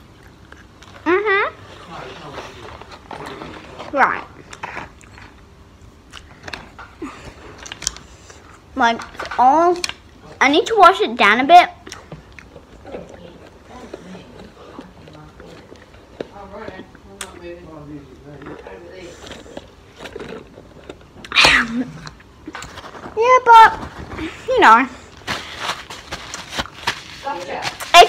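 A young girl talks with animation close to a phone microphone.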